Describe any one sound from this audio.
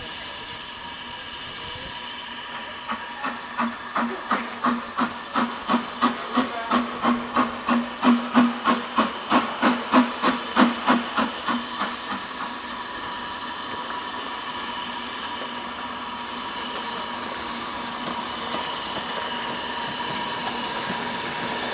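A steam locomotive's engine hisses and rumbles steadily as it rolls closer.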